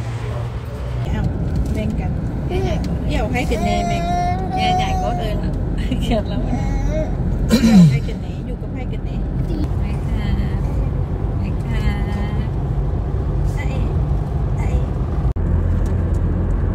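A car engine hums steadily with road noise while driving.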